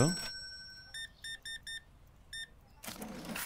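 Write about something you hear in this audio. A scanner beeps several times in quick short bursts.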